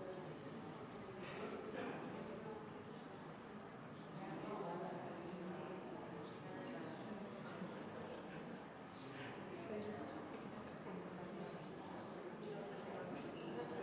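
An audience murmurs and chatters quietly in a large echoing hall.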